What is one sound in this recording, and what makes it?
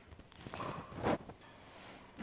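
A metal bowl clanks against a metal pot.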